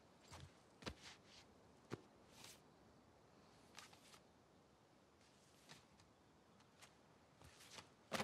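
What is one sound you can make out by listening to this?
A cardboard record sleeve rustles and slides against paper.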